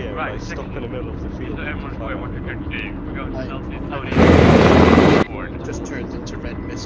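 A helicopter engine drones steadily with thudding rotor blades.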